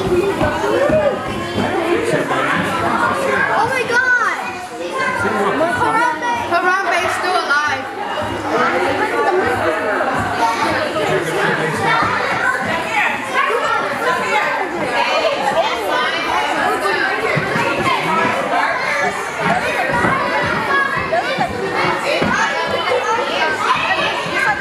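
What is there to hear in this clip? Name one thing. A crowd of visitors chatters nearby.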